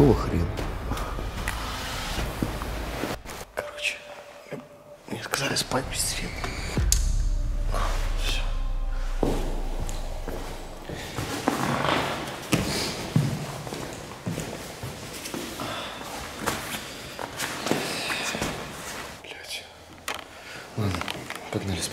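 A young man talks quietly and close by.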